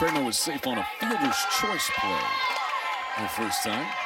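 A softball pops into a catcher's mitt.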